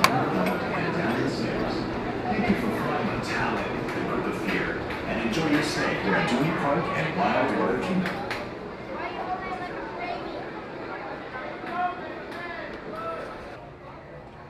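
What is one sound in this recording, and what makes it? Footsteps walk on a hard floor and stairs.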